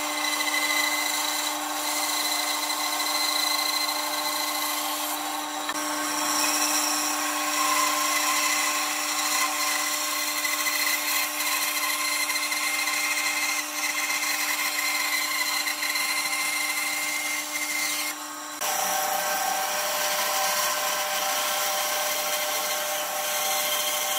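A band saw hums steadily as it cuts through wood.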